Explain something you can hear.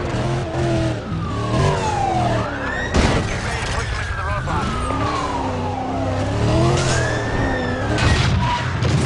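Sirens wail and rise and fall in pitch.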